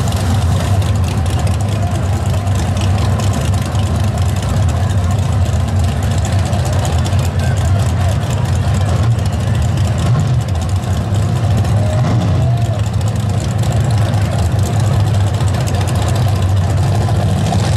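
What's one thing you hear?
Drag racing engines idle and rumble loudly outdoors.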